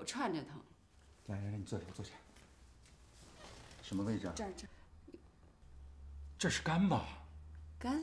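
A woman speaks with discomfort close by.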